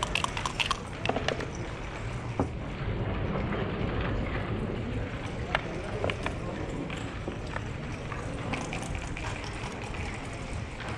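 Backgammon checkers click against each other and tap on a wooden board.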